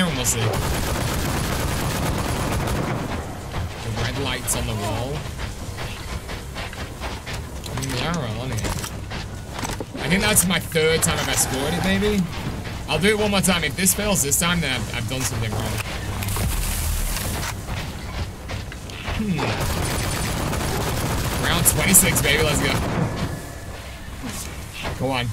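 Gunfire from a game rings out in rapid bursts.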